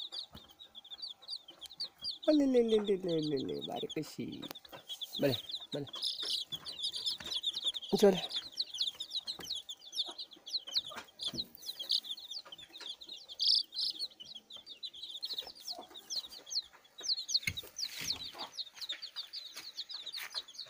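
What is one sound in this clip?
Many chicks peep constantly in high chirps close by.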